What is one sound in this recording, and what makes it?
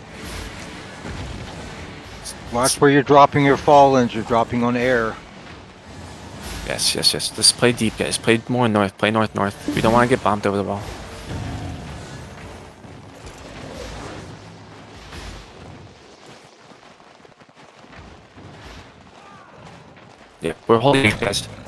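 Magic spells whoosh and crackle in a chaotic fight.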